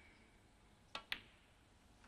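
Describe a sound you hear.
A snooker cue strikes the cue ball.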